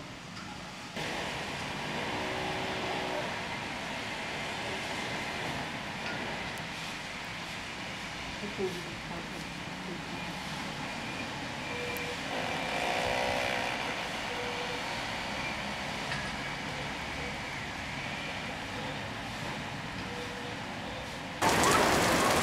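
Rain patters steadily on wet pavement.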